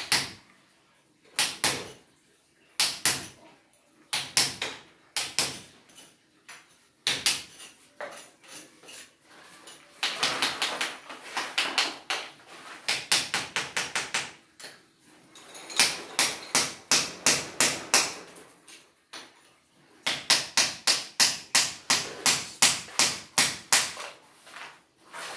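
A hammer strikes a chisel against concrete in quick, sharp, ringing blows.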